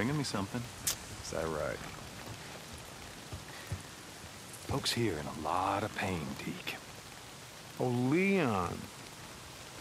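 A second man answers calmly, close by.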